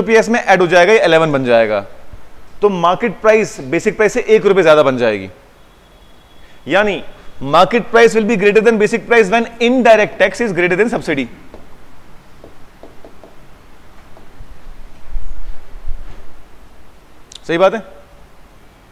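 A man explains calmly and clearly, close by.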